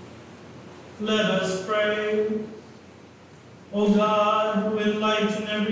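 A man chants in a sung voice through a microphone in a large, echoing room.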